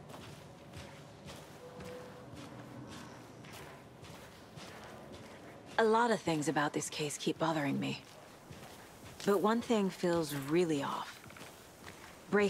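Footsteps crunch on a leafy forest path.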